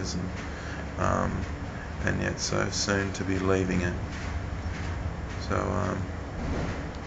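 A young man speaks close to a microphone in short bursts.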